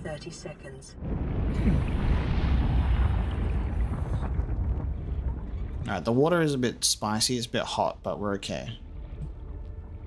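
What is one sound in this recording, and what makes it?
Bubbles rush and water gurgles underwater.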